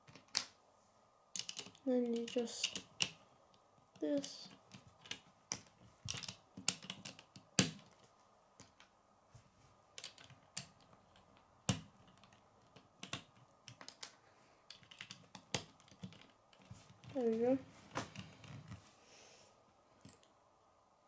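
Plastic toy bricks click and snap together.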